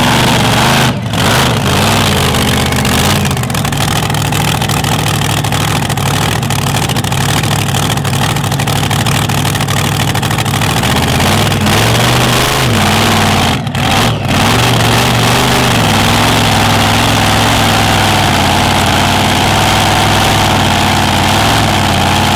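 A powerful engine roars loudly close by, revving up and down.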